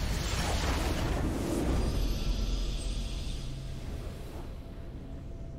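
A bright, triumphant fanfare blasts and then fades.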